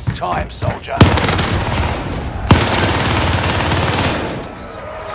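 A rifle fires loud rapid bursts.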